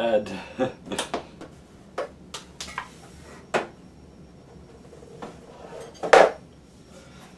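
Objects clatter and knock as a young man rummages about.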